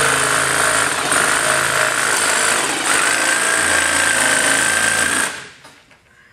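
A power jigsaw buzzes loudly as it cuts.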